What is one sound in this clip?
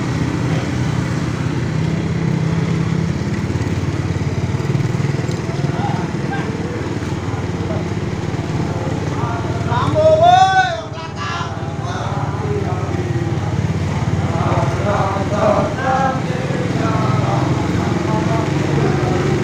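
A large column of soldiers marches in boots on an asphalt road.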